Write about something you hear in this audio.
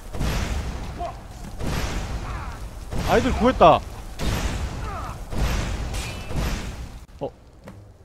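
Fire spells roar and crackle in bursts.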